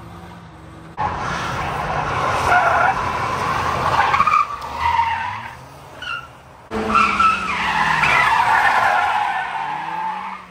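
Tyres screech loudly on asphalt.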